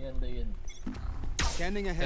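An electric bolt crackles and zaps.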